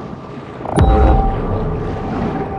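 Water splashes loudly as a fish leaps.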